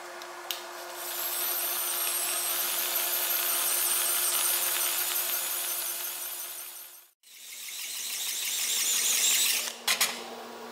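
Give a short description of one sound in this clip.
A cordless drill whirs as it spins a polishing wheel against metal.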